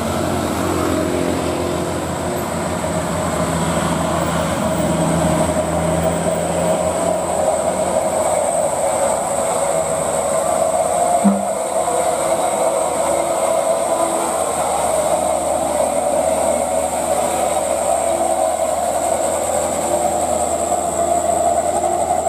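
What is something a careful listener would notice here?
A truck engine rumbles and labours as it climbs past close by.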